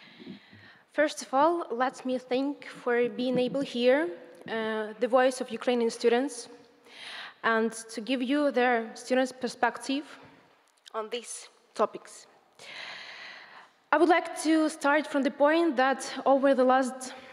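A young woman speaks calmly into a microphone in a large hall.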